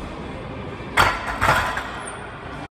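Barbell plates clank against a metal rack.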